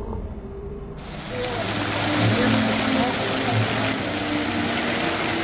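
A fountain's water splashes and gushes steadily.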